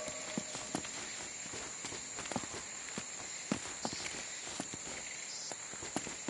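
Footsteps crunch on stone and leaves.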